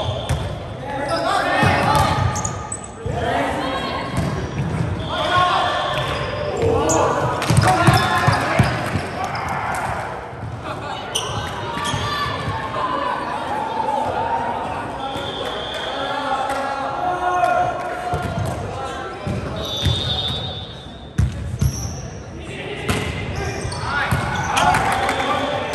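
Young men and women shout and call out with animation across a large echoing hall.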